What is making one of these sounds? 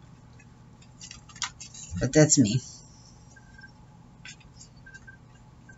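A thin plastic sheet crinkles and rustles as hands handle it.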